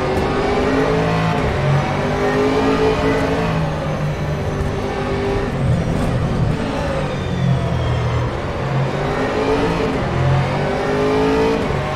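A racing car engine roars loudly, revving up and down through the gears.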